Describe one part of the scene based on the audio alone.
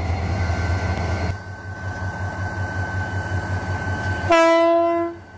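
A diesel locomotive engine rumbles steadily close by.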